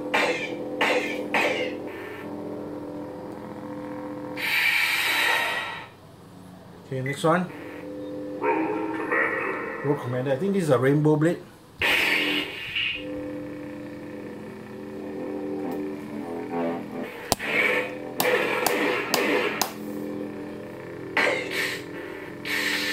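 A toy light saber hums steadily.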